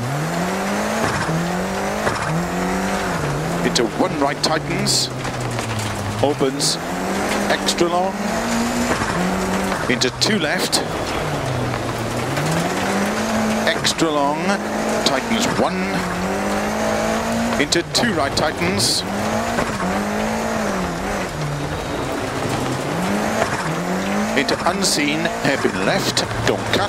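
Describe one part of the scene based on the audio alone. Gravel crackles and sprays under the tyres.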